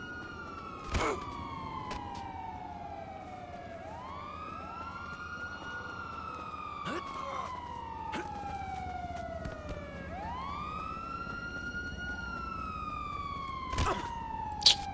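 A body thuds heavily onto the ground.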